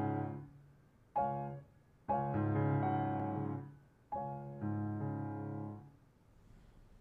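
A piano plays a slow melody, close by.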